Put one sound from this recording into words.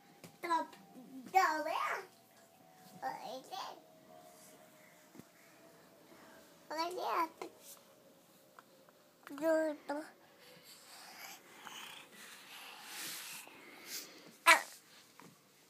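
A toddler babbles and squeals up close.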